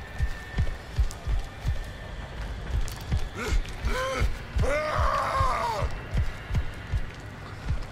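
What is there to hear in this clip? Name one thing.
Heavy footsteps thud at a steady pace on a hard floor.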